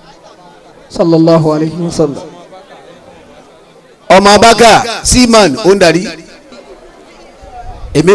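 A man chants loudly into a microphone, heard through loudspeakers outdoors.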